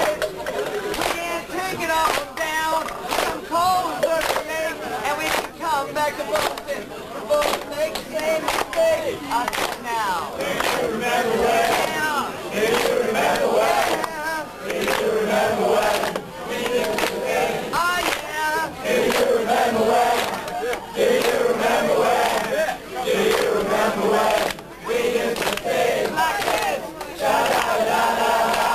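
A young man sings loudly through loudspeakers.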